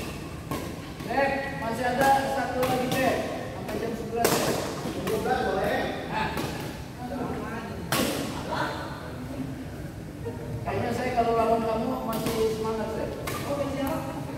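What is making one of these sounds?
Men call out to each other across the court.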